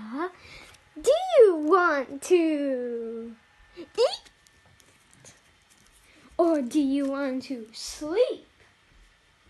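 A baby coos and babbles in a high voice close by.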